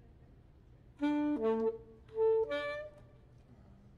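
A saxophone plays a few short, loud notes.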